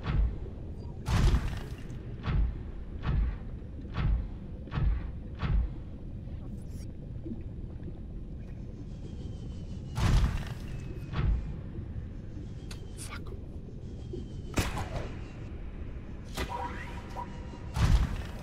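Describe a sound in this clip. A submarine engine hums low and steady underwater.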